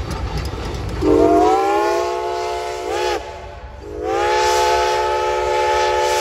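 A steam train whistle blows loudly in long blasts.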